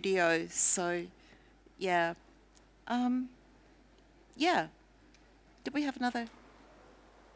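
A woman speaks into a microphone in short, lively bursts.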